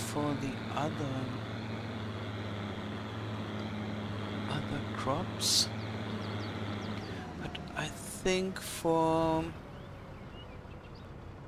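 A truck engine hums steadily as the truck drives along, then quietens as it slows.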